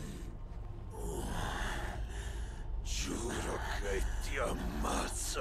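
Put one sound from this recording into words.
A man speaks in a strained, hoarse voice, close by.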